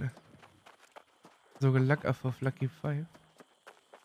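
Footsteps run over a dirt path.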